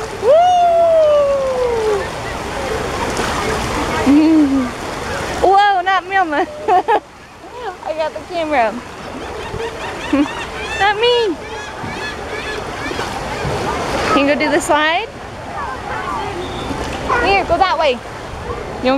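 A young child squeals and babbles excitedly close by.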